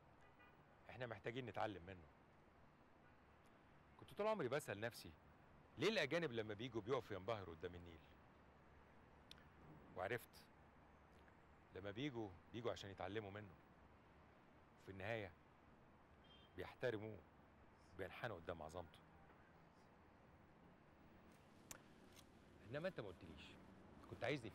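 An elderly man speaks calmly and close by, in short phrases with pauses.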